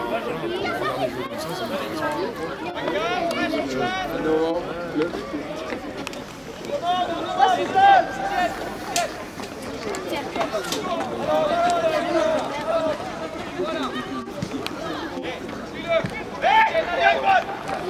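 Children shout and call out to each other across an open playing field.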